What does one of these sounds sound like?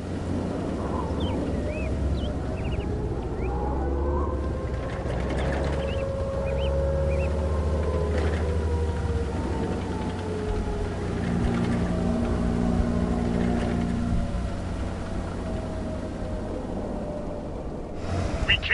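A tank engine rumbles and drones steadily.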